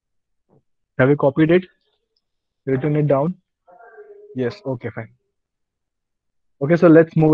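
A young man speaks calmly through a microphone, explaining in short phrases.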